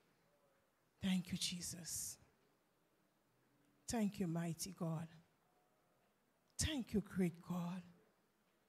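A woman speaks with animation through a microphone and loudspeakers, in short bursts with pauses.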